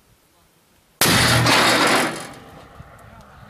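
A heavy gun fires with a loud, sudden boom close by.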